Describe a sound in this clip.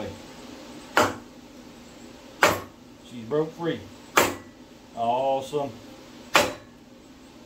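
A hammer knocks sharply on a wooden block.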